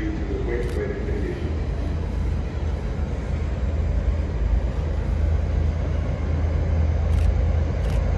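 A diesel locomotive rumbles as it approaches, growing slowly louder.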